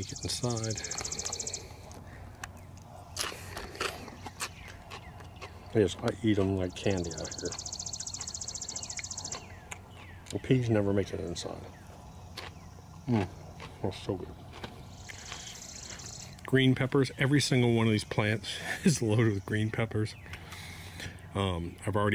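An older man talks calmly and closely into the microphone.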